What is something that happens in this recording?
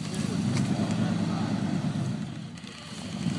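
A pickup truck engine revs as it pulls.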